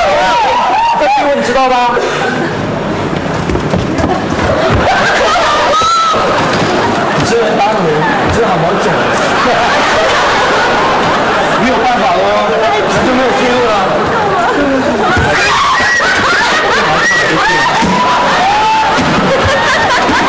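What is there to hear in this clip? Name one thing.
A young man speaks loudly and with animation on a stage.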